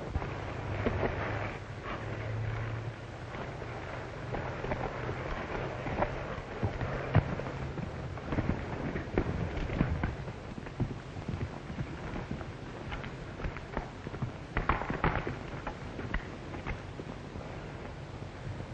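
Horse hooves clatter and thud over rocky ground.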